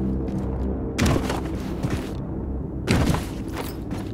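A heavy thud sounds as someone drops down onto a metal floor.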